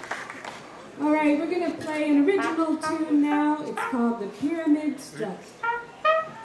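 A trumpet plays a lively melody up close.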